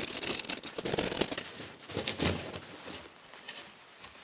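A hand saw rasps through plasterboard.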